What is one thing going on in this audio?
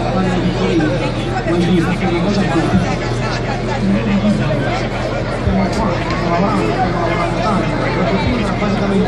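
A crowd of men and women chatters loudly outdoors.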